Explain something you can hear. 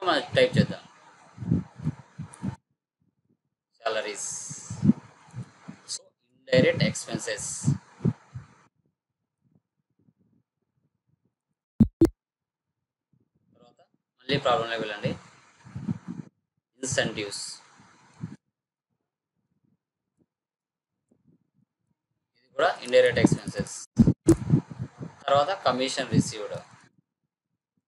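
A young man speaks calmly and steadily into a close microphone, explaining in short bursts with pauses.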